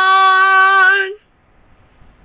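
A young girl sings a long, steady note close to a microphone.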